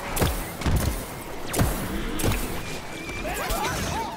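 A video game cannon fires explosive shots.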